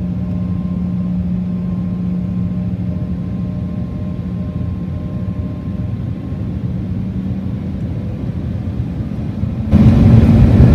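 Jet engines hum steadily inside an airliner cabin.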